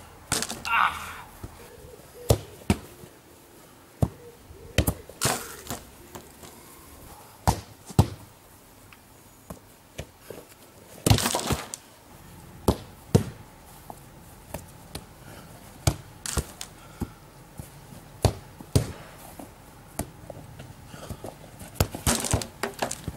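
A football is kicked with sharp thuds, again and again.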